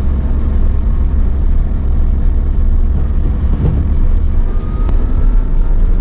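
Windscreen wipers sweep across the glass.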